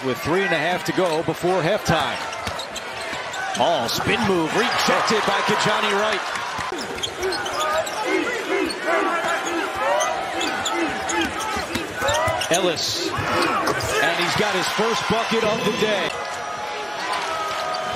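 A large crowd murmurs throughout a big echoing arena.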